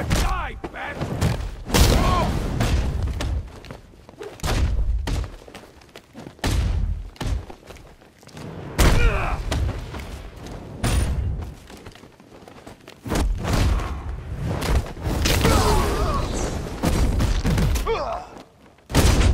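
Heavy punches and kicks land with thuds again and again.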